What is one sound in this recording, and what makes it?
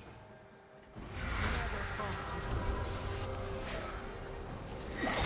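Spell effects whoosh and crackle in a fight.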